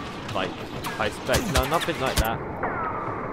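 Blaster rifles fire in quick bursts of shots.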